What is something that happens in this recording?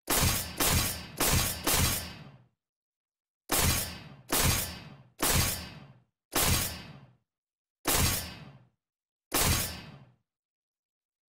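Short ringing menu chimes sound again and again, each fading quickly.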